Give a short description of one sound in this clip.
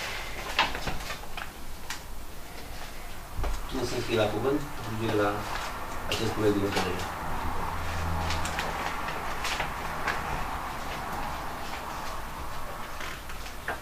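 Paper rustles on a table.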